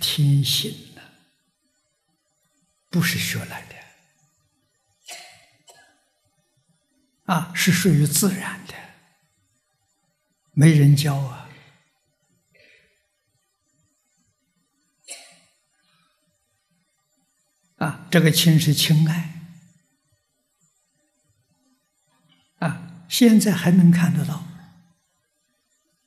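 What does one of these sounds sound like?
An elderly man speaks calmly into a microphone in short phrases with long pauses.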